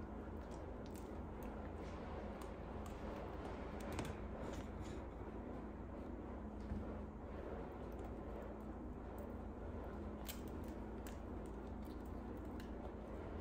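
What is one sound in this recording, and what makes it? An owl tears at raw meat with soft, wet clicking sounds.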